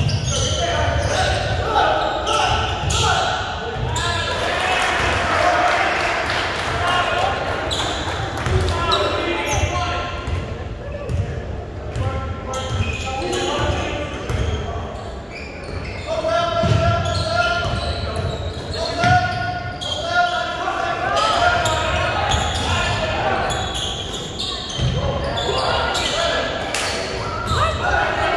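Sneakers squeak on a gym floor in a large echoing hall.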